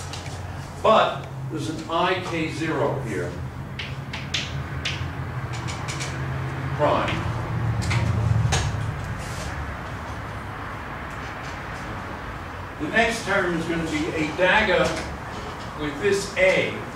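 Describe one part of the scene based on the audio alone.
An elderly man lectures calmly.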